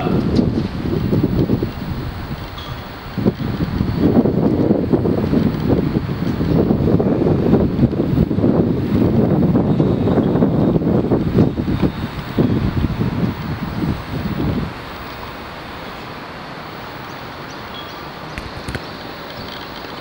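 A tennis ball is struck with a racket outdoors.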